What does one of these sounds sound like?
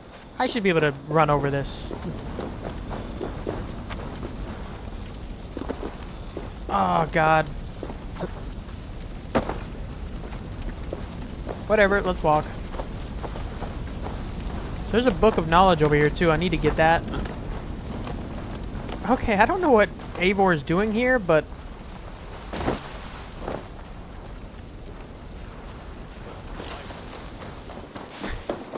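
Footsteps run over grass and earth.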